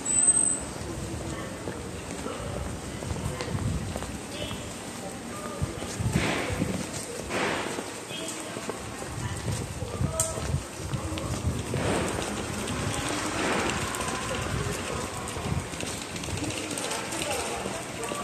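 Footsteps of passers-by tap on a tiled walkway in a covered arcade.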